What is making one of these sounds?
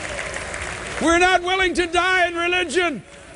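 A man sings loudly and strongly into a microphone.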